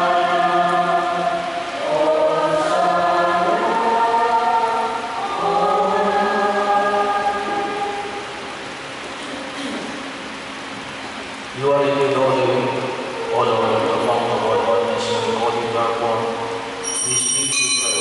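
A man chants in a slow sung voice through a microphone.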